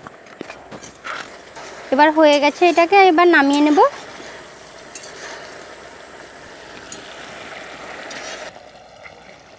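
Thick sauce bubbles and simmers in a pan.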